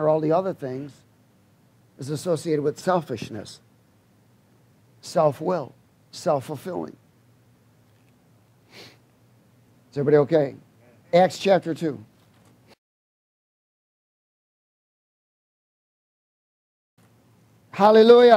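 A man speaks with animation into a headset microphone, in short bursts with pauses.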